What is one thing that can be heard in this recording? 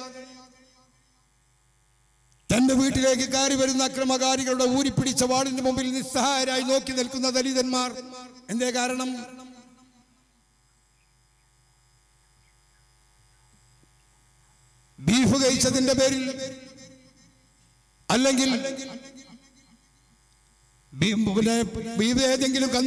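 A man gives a forceful speech through a loudspeaker system, with pauses between bursts.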